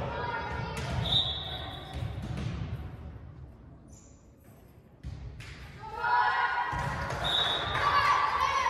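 A referee's whistle blows short, shrill blasts.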